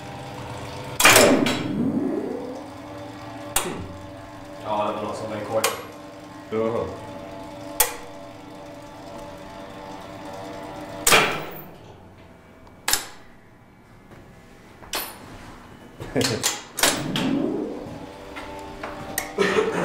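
Metal parts clank loudly now and then and ring out.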